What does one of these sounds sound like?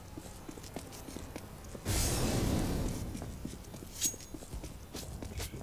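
Quick footsteps tread on stone.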